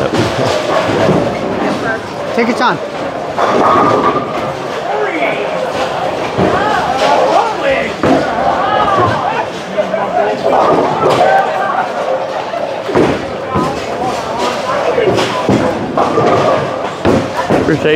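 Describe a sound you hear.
A bowling ball rolls down a lane and crashes into pins.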